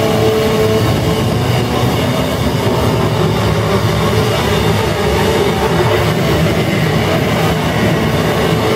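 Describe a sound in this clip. An upright bass is played with deep plucked notes.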